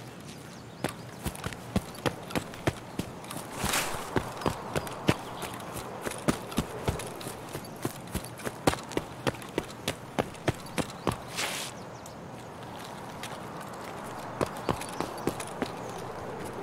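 Footsteps crunch steadily on gravel and hard ground.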